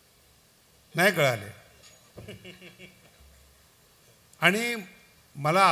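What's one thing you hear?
A man chants loudly through a loudspeaker in a large echoing hall.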